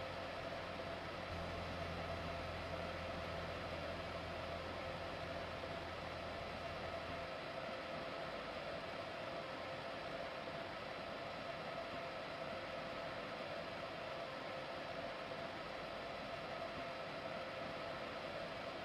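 A train idles with a steady electric hum.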